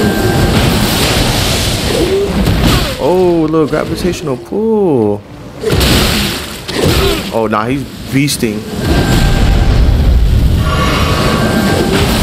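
A magic blast bursts with a loud crackling whoosh.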